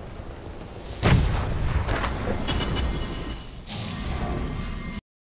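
Magic spells crackle and hiss in bursts.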